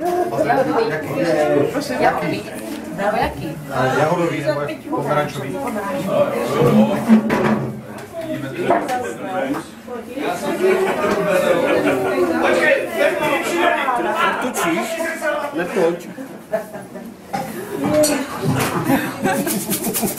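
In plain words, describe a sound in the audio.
A crowd of men and women chatter loudly all around in a lively, echoing room.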